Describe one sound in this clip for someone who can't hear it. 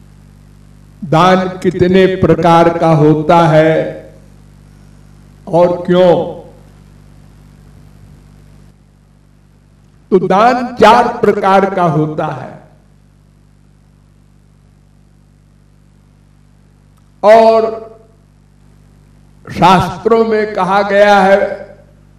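An elderly man speaks into a microphone in slow bursts with long pauses.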